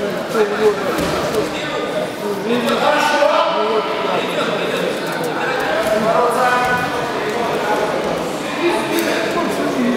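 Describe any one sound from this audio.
Feet shuffle and thud on a padded mat.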